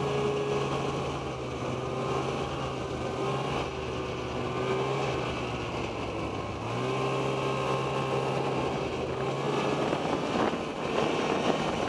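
Skis and tracks hiss and crunch over packed snow.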